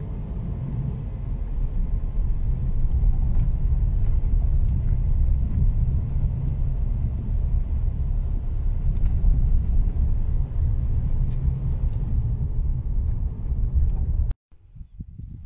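Tyres rumble over a gravel road.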